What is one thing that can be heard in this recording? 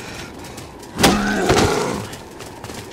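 A wooden bat strikes a body with a heavy thud.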